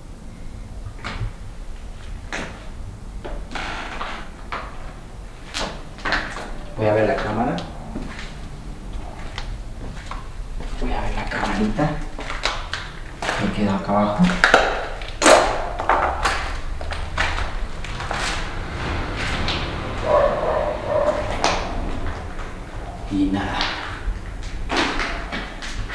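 Footsteps crunch over rubble and debris.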